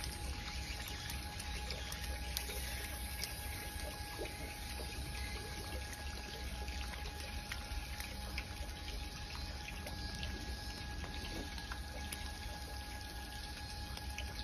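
Penguin feet patter softly on stones.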